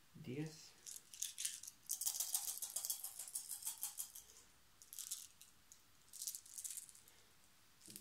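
Small dice rattle and clatter onto a tabletop.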